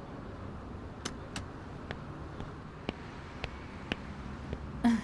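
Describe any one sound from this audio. Footsteps tap on pavement.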